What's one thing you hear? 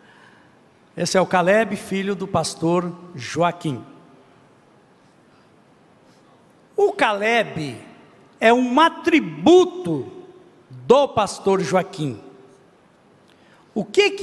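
A man speaks with animation into a microphone, heard over loudspeakers in a large echoing hall.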